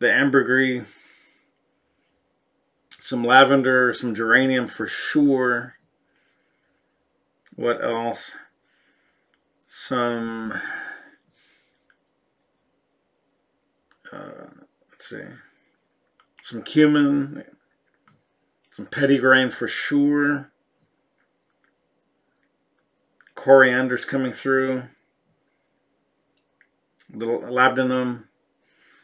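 A middle-aged man speaks close to a microphone, calmly and thoughtfully, with long pauses.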